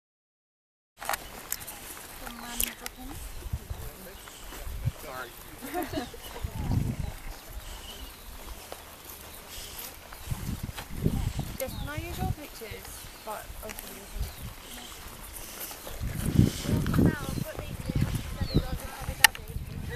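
Young men and women chat quietly a little way off.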